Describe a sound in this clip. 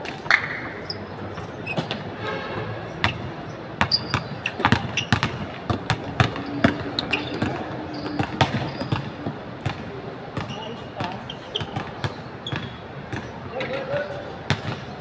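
Sneakers squeak on the court surface.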